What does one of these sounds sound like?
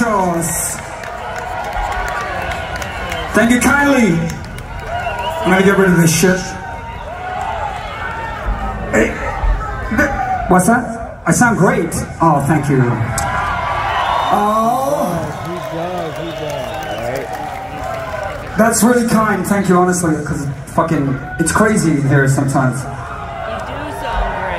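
A man sings loudly through loudspeakers.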